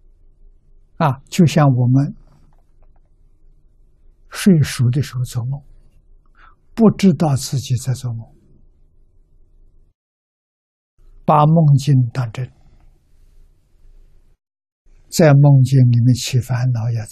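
An elderly man speaks calmly and slowly into a microphone, with long pauses.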